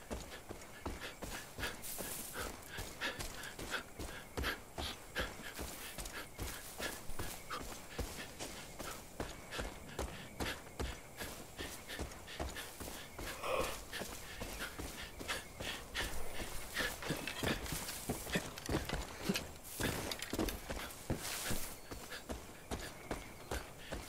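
Footsteps rustle and crunch through grass and undergrowth at a steady pace.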